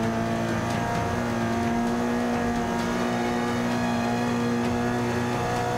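A racing car engine drones steadily at high revs, rising slightly in pitch.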